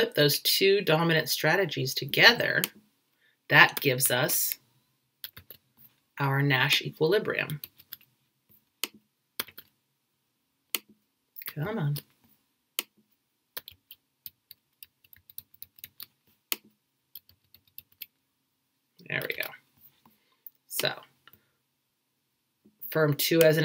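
A woman talks calmly and close, through a computer microphone, with pauses between phrases.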